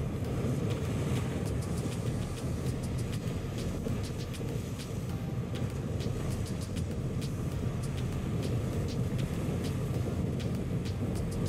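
Waves crash and splash against a boat's hull.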